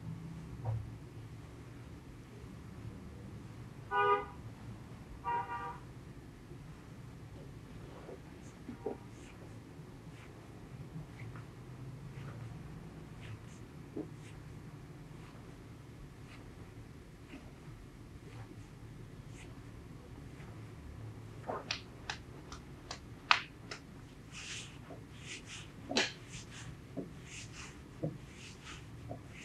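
Hands rub and knead a leg through denim cloth.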